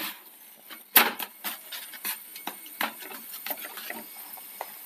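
A spatula scrapes and taps against a hot pan.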